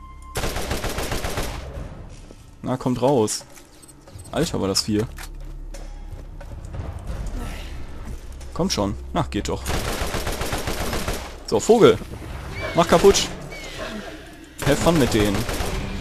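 A video game assault rifle fires in rapid bursts.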